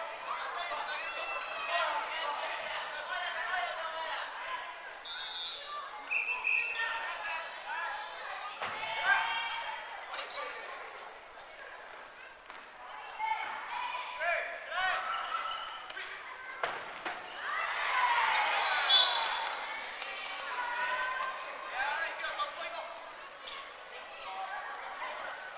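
A crowd of women and girls shout and cheer in a large echoing hall.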